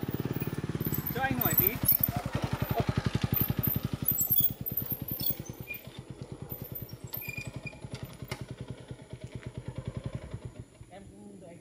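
A motorbike engine rumbles close by.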